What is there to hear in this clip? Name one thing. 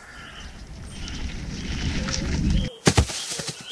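A bicycle rolls fast over rough, bumpy ground.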